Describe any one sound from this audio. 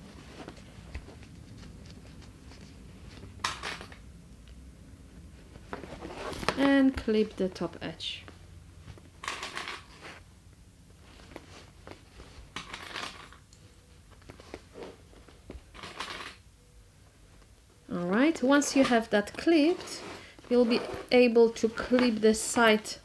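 Fabric rustles and scrapes as hands handle a bag.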